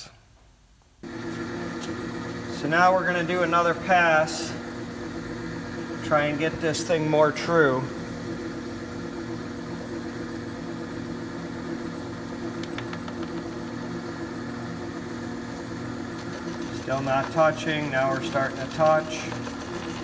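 A lathe motor hums steadily as a spinning wheel turns.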